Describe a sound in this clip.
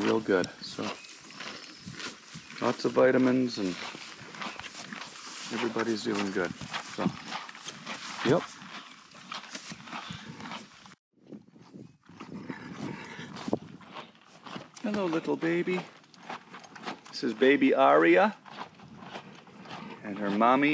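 A horse munches and crunches feed close by.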